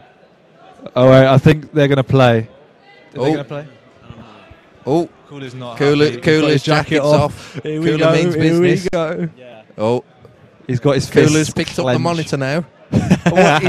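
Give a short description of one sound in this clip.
A man talks loudly close by.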